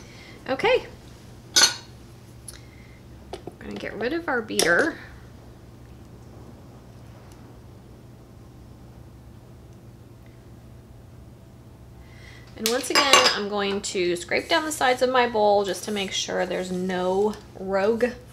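A spatula scrapes around a metal mixing bowl.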